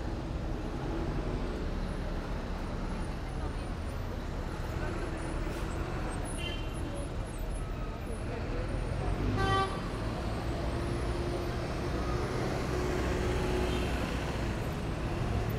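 Traffic hums steadily on a nearby street.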